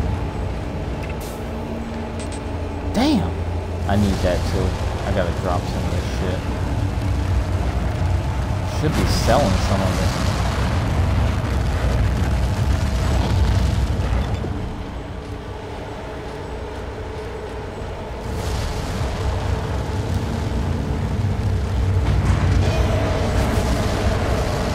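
A deep mechanical hum drones steadily.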